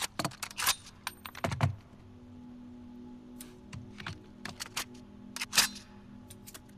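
Metal parts of a rifle click and clack as they are fitted together.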